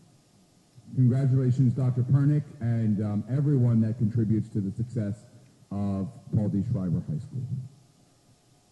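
A man speaks into a microphone over loudspeakers in a large echoing room.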